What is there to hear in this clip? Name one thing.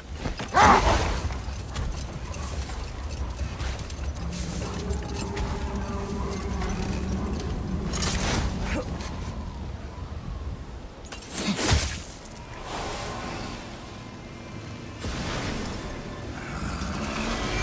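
Wind howls steadily outdoors.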